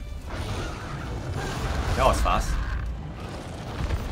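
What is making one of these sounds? A huge winged beast roars.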